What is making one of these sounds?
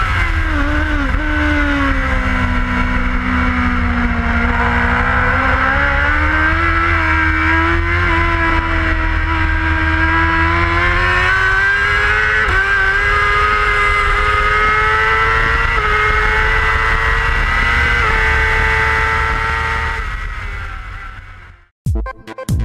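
Wind rushes hard past the rider.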